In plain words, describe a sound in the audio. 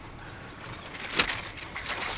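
Paper rustles as a sheet is handled.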